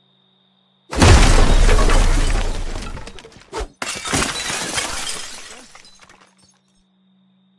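A window is smashed and glass shatters loudly.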